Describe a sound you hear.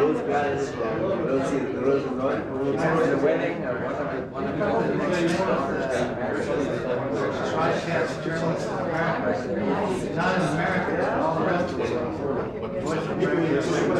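Several men chat and murmur together.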